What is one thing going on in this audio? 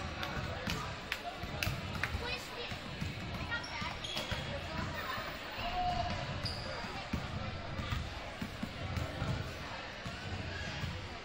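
Basketballs bounce on a hardwood floor in a large echoing gym.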